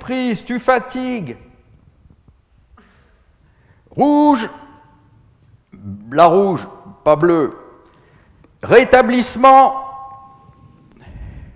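An elderly man sings out loudly in short, high-pitched bursts in an echoing room.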